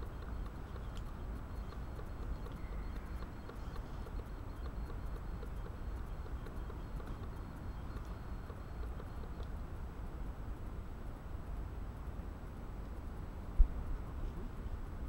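Wind rumbles low and steadily outdoors.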